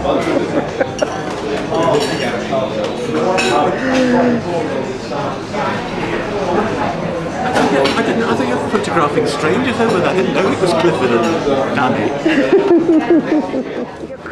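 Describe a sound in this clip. Older men laugh nearby.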